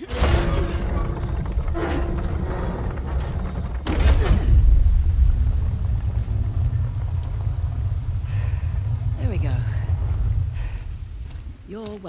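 A heavy stone mechanism grinds and rumbles as it turns.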